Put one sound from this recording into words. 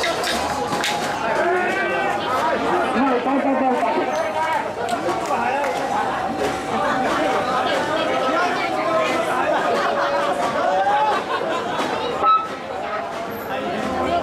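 A large outdoor crowd chatters and chants loudly all around.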